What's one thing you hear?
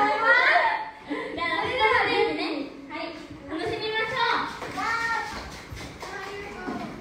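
A young woman speaks into a microphone with animation.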